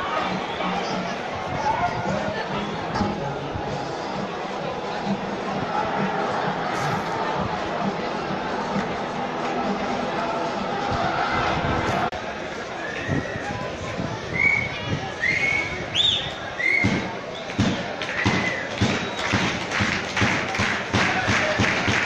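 A crowd of fans chants loudly.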